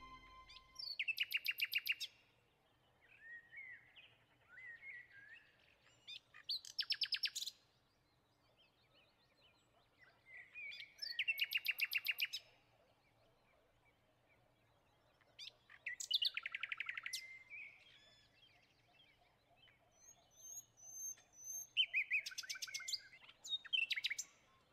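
A small bird sings in short bursts of high, rapid trills and warbles.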